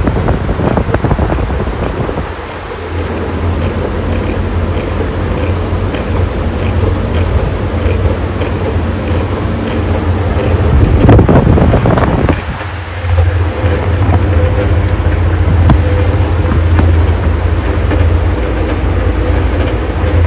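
An electric fan motor hums steadily.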